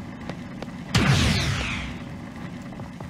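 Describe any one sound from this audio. A magical blast bursts with a whoosh and fades.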